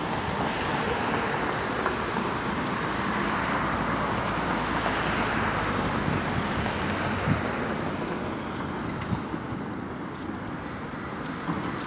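A tram hums steadily while standing at a stop.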